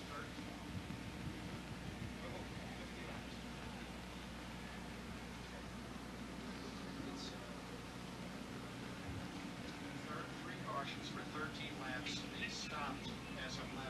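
A cloth flag flaps as it is waved.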